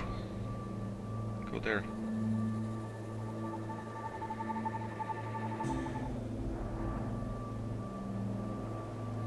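An electronic device hums with a steady low drone.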